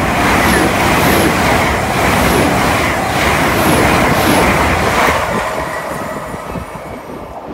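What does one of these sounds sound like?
A train rushes past close by with a loud roar that fades as it goes.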